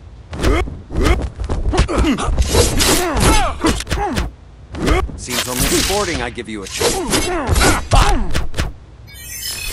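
Punches and kicks land with heavy thuds in a fight.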